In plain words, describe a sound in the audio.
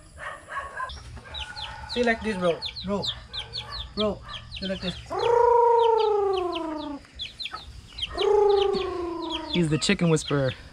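Chicks cheep rapidly nearby.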